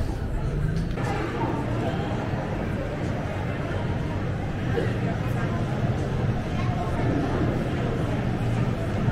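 A crowd chatters indoors in a large echoing hall.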